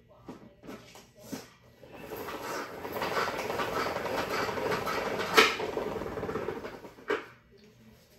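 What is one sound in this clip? A wooden handle knocks against something.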